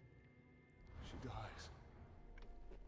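A ghostly whoosh sweeps past and fades.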